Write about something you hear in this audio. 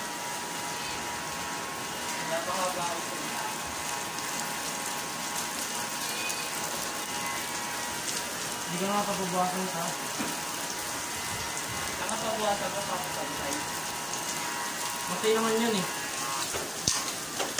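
An electric hair clipper buzzes steadily close by.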